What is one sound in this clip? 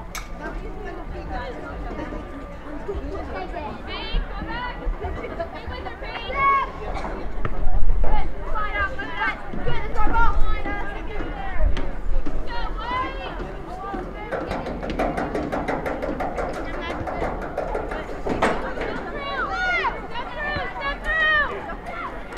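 Young women shout and call out to each other across an open outdoor field.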